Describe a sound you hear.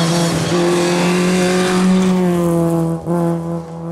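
Tyres crunch and spray gravel as a car slides through a bend.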